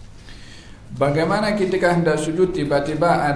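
A man reads aloud in a chanting voice through a microphone, in an echoing hall.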